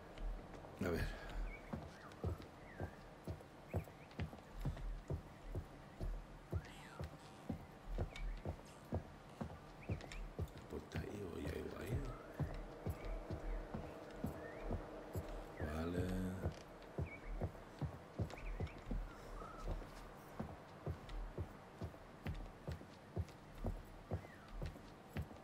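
Footsteps thud slowly on a hard wooden floor.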